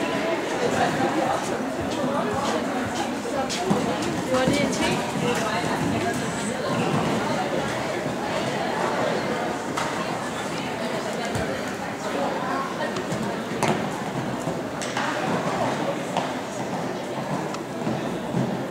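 A horse's hooves thud on sand as it canters in an indoor arena.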